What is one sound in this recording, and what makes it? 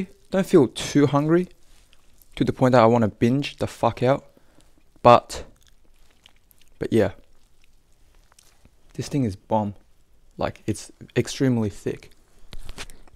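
A young man speaks calmly and close by, in short bursts.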